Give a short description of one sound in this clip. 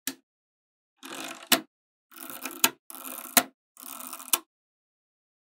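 Rows of magnetic balls rattle and clatter as they are pressed into place.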